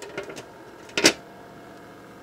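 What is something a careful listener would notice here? A plastic lid clicks into place.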